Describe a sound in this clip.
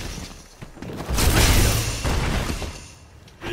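An energy fireball bursts with a crackling whoosh in a fighting video game.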